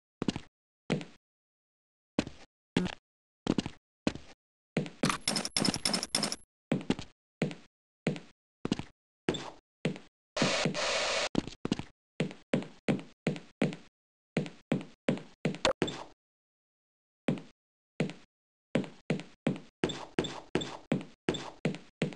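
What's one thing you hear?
Footsteps thud quickly and steadily on wooden boxes.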